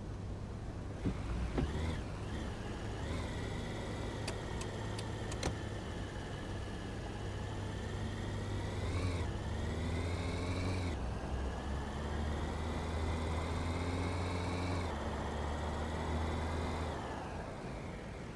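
A car engine revs up as the car accelerates through the gears.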